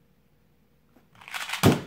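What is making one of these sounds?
Hands slap down on a timer pad.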